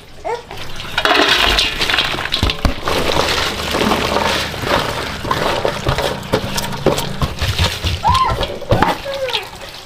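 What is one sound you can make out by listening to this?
Vegetables rustle as a hand tosses them in a metal bowl.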